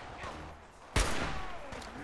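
A scoped rifle fires a single shot.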